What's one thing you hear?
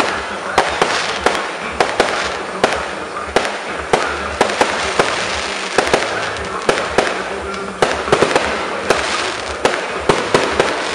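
Fireworks burst with sharp bangs and pops, again and again.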